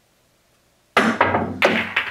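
A cue strikes a ball sharply.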